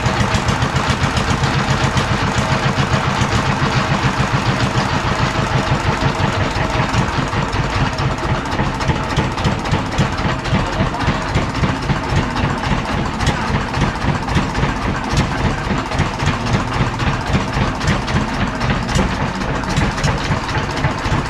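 A small diesel engine chugs loudly and steadily close by.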